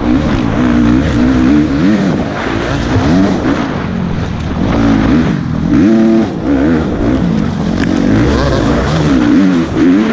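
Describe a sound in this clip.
Other dirt bike engines buzz nearby.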